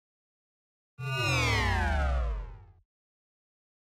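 A video game sound effect sweeps quickly downward in pitch.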